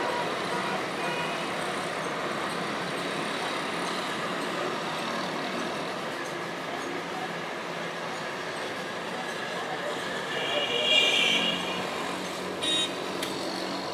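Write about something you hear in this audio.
Vehicle horns honk in the distance.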